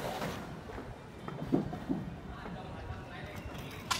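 A trowel taps and scoops cement in a bucket.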